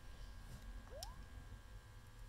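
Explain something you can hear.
A rising electronic blip sounds from a handheld game console's small speakers.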